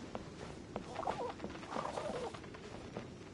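Birds flutter their wings as they take off.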